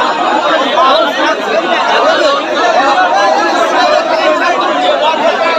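A large outdoor crowd of men cheers and shouts loudly throughout.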